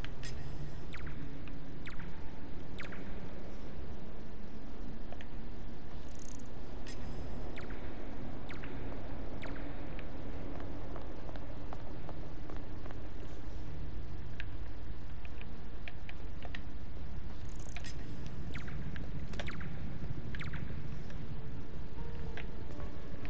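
Soft footsteps shuffle on a hard floor.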